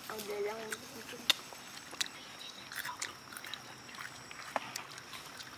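A man chews food with soft wet clicks.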